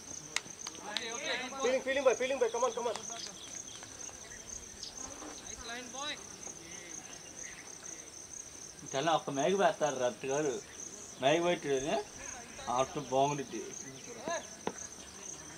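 Men shout and call out across an open field outdoors.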